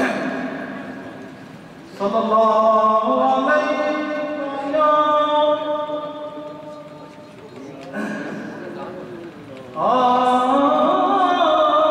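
A man chants in long, drawn-out melodic phrases through a microphone in an echoing hall.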